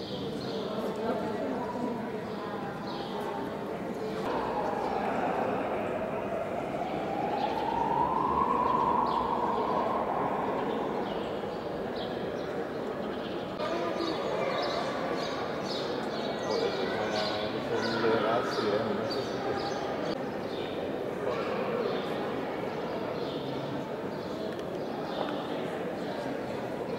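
A crowd of people murmur and chatter in a large echoing hall.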